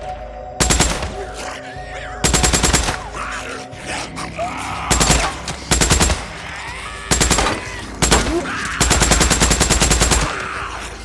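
A submachine gun fires in rapid bursts, close by.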